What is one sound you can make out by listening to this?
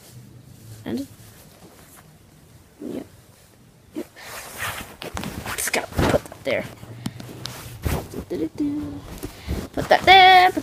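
A young boy talks and exclaims close by, growing more excited.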